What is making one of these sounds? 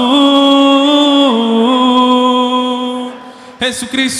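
A crowd of men and women sings loudly together.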